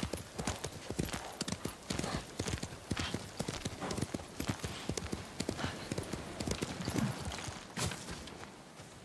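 A horse gallops with quick, rhythmic hoofbeats.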